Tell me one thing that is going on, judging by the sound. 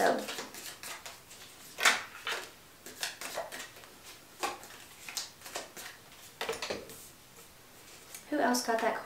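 Cards riffle and shuffle with soft rapid flicks.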